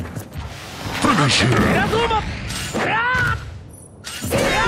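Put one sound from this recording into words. Explosions burst with a loud roar.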